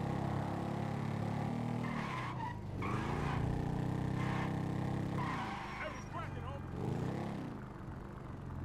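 A motorbike engine revs and whines as it speeds along.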